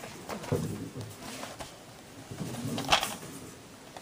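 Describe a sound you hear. A plastic DVD case is handled and set down on carpet.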